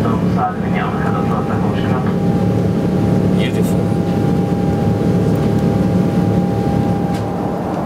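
A jet airliner's engines roar steadily from inside the cabin.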